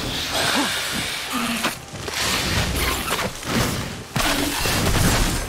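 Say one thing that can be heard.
A sword swishes and strikes in a fight.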